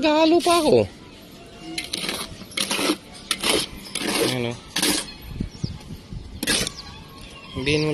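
A trowel clinks against a metal bucket.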